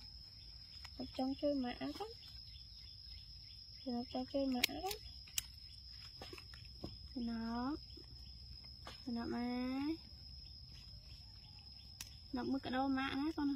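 A baby monkey cries out in shrill, wavering squeals, again and again.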